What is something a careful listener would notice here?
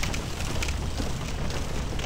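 A fire roars close by.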